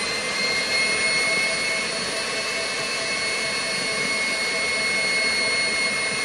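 An electric stand mixer whirs steadily with a high whine.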